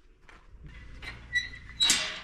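A metal gate creaks as it swings open.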